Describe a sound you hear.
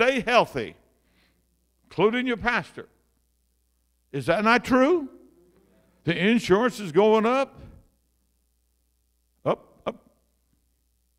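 An elderly man speaks with animation through a microphone, in short bursts with pauses.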